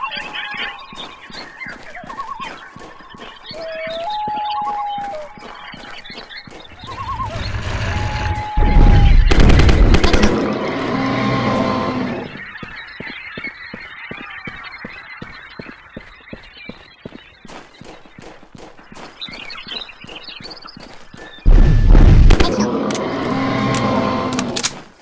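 A gun fires rapid shots again and again.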